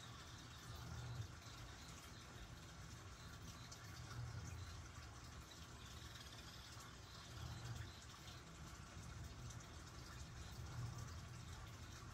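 A light wind rustles leaves outdoors.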